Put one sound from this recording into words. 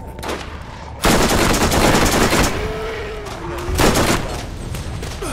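A futuristic gun fires loud crackling blasts.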